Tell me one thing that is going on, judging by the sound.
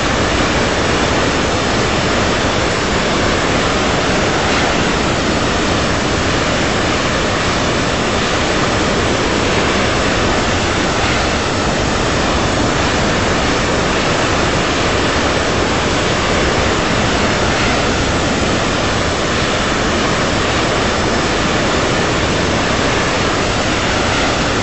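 Jet engines roar steadily as an airliner flies.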